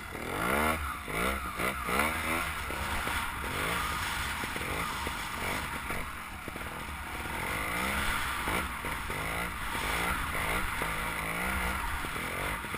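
A motorbike engine revs up and down as it rides.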